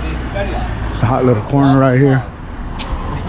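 A man talks loudly nearby for a moment.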